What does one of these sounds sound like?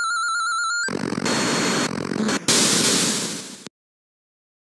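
Electronic game noise crackles and bursts.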